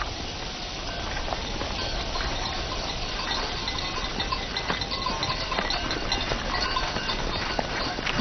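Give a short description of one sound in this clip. Footsteps crunch on dry ground as a group walks.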